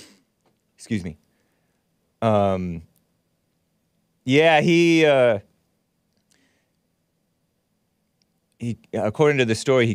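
A man speaks close to a microphone in short, drawn-out bursts with pauses between.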